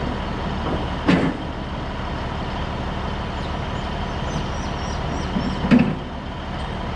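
Metal tie-down gear clanks on a trailer.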